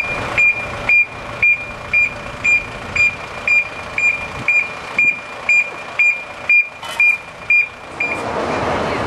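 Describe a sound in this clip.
A tow truck's warning alarm beeps rapidly and steadily.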